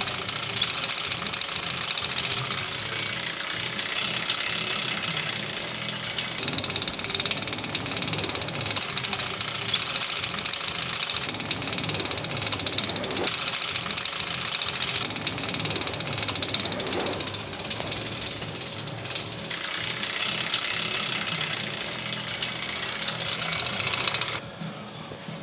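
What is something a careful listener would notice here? An electric hub motor whines as a wheel spins.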